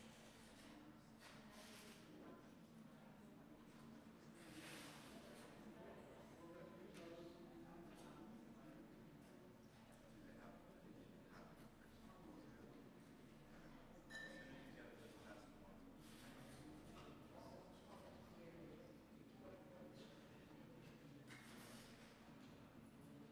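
Several men talk quietly at a distance in a large, echoing room.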